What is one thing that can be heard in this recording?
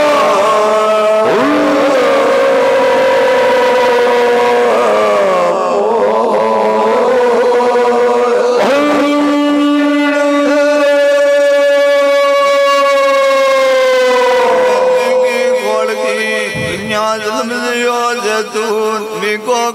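A harmonium plays a steady drone.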